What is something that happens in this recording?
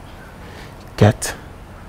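A man speaks calmly and briefly nearby.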